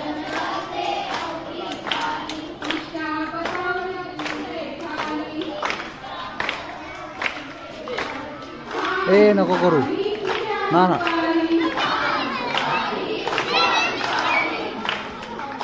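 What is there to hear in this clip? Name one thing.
Women clap their hands in rhythm.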